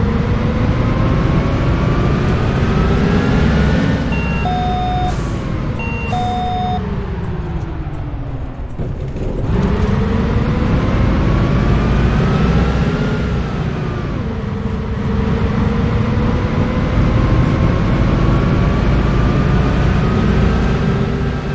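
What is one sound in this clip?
Tyres rumble over a cobbled road.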